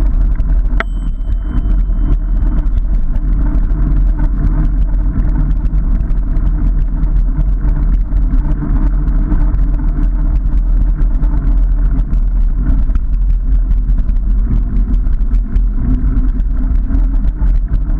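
Bicycle tyres roll and rattle over a rough gravel path.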